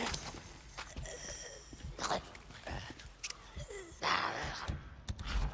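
Footsteps crunch slowly on gravel.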